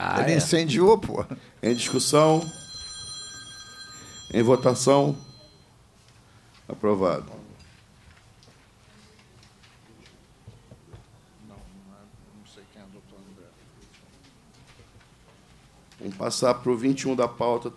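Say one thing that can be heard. A man reads out calmly through a microphone, in a room with light echo.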